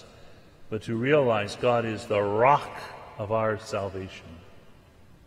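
An older man speaks calmly through a microphone in a large echoing hall.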